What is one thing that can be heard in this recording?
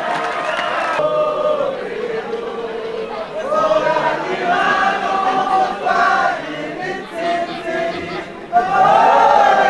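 A group of players and staff chant and cheer together outdoors.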